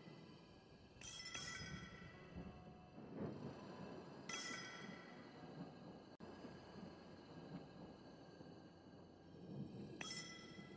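Soft menu chimes ring out now and then.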